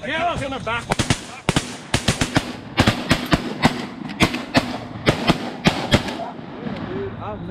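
A shotgun fires several sharp, loud blasts outdoors.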